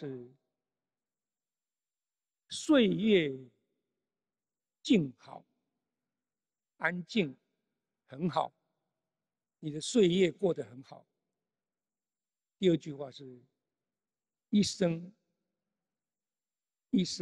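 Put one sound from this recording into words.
An elderly man speaks slowly and emphatically into a microphone, with long pauses between phrases.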